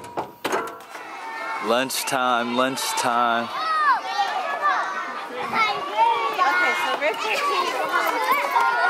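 Children and adults chatter in a lively crowd outdoors.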